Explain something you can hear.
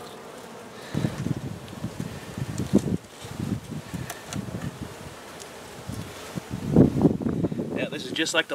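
Wooden hive frames scrape and knock against a box.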